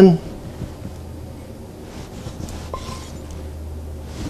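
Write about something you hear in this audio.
A knife slices through a lemon onto a wooden board.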